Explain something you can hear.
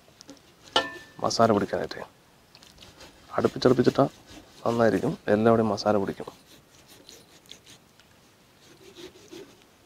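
A knife slices softly through raw chicken skin.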